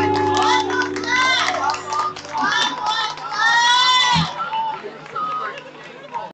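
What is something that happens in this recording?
A woman sings through loudspeakers.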